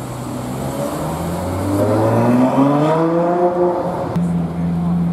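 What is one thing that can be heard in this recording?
A sports car engine revs up loudly, rising in pitch.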